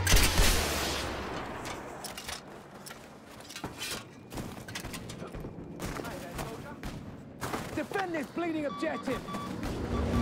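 A heavy anti-aircraft gun fires rapid bursts.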